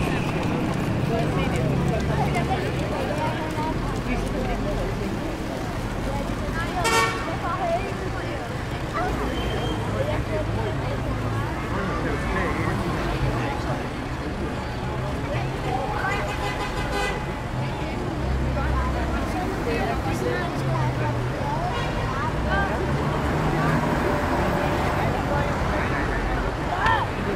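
Old motor buses and cars rumble past.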